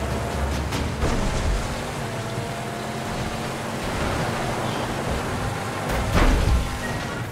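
Two vehicles bang against each other.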